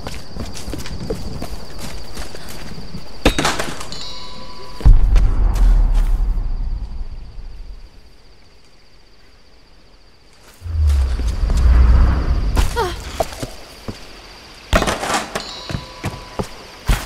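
Footsteps crunch over leaves and earth.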